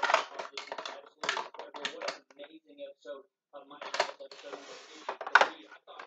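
A plastic toy rattles and clacks in a hand.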